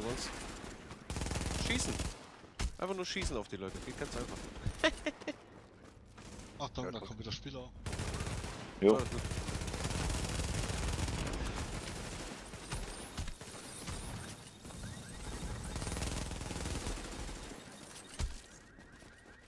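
Gunshots crack in rapid bursts from a video game.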